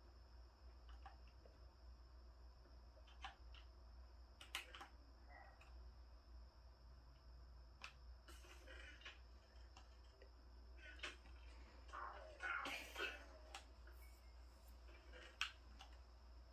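Short game sound effects click and pop from a television speaker.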